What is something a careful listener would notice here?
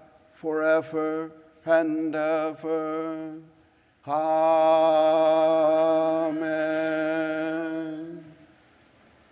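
An elderly man chants in a sung voice through a microphone, echoing in a large hall.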